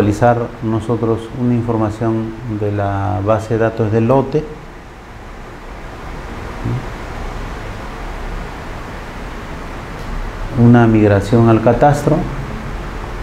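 An elderly man lectures calmly through a microphone.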